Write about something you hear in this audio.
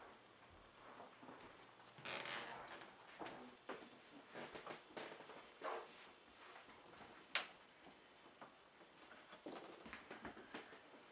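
Footsteps shuffle across a hard floor close by.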